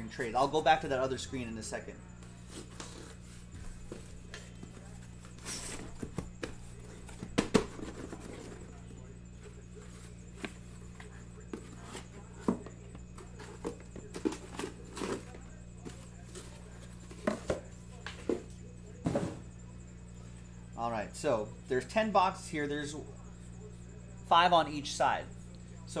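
Cardboard boxes and wrapped packs knock and rustle as hands handle them.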